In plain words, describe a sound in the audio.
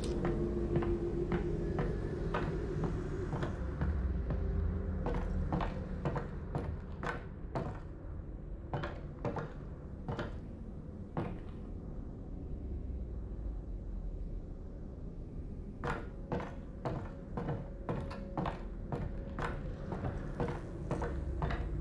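Footsteps thud and creak across a wooden floor.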